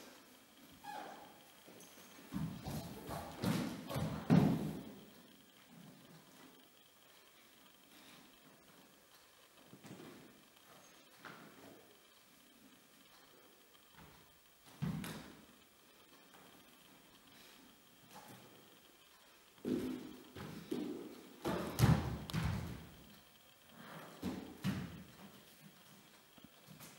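Bare feet thump and slide on a hard floor in an echoing room.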